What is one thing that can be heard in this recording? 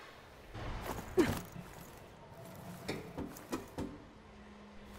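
Hands grip and knock against wooden ledges while climbing.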